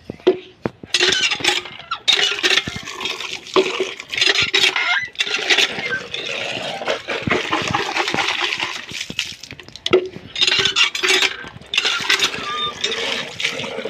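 Water gushes from a hand pump and splashes onto the ground.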